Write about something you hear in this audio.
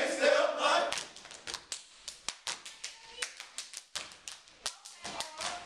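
Feet stomp on a wooden stage in a sharp, steady rhythm.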